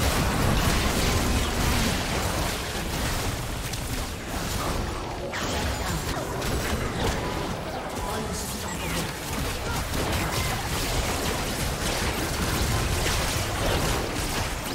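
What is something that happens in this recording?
Video game battle effects clash and burst.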